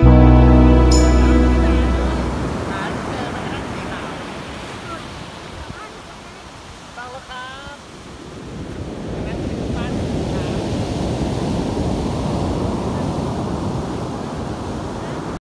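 Waves crash and wash onto a pebble beach.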